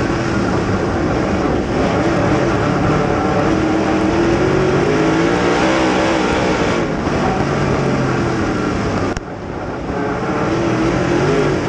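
A race car engine roars loudly up close, rising and falling in pitch as it revs.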